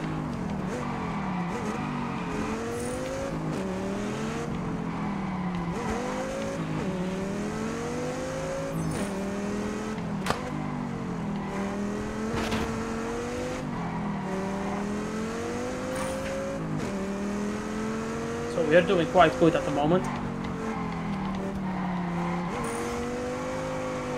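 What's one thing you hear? A car engine roars, revving up and down as gears shift.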